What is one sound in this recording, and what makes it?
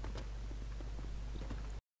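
Footsteps run along a hard floor.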